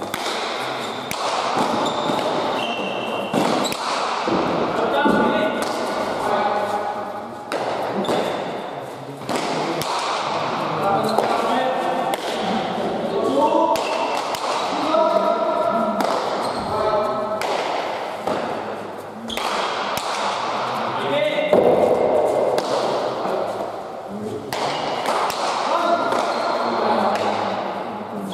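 Shoes squeak and scuff on a hard floor as players run.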